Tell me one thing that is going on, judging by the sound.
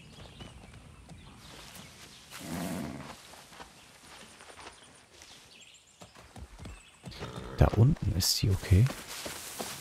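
Leafy branches rustle as they brush past.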